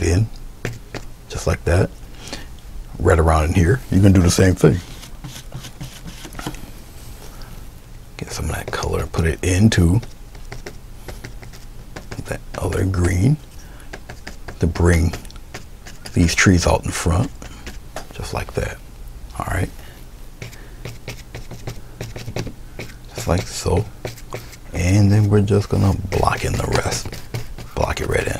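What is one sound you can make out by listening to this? A paintbrush dabs and taps softly on paper.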